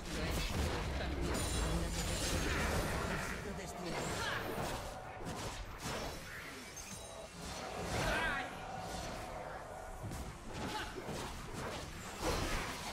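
Magic blasts and clashing effects of a video game battle crackle and boom.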